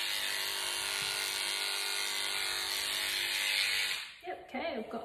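Electric clippers buzz steadily close by.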